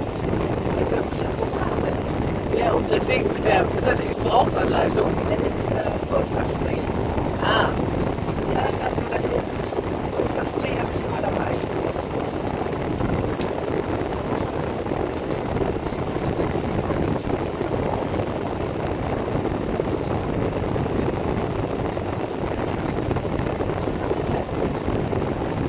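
A car engine hums steadily as the car drives slowly.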